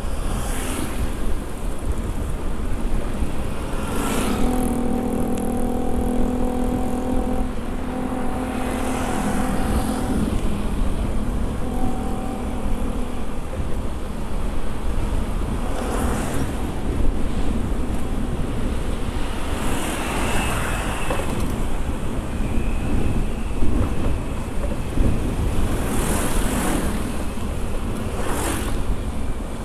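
Motorbike engines hum steadily as riders pass along a road.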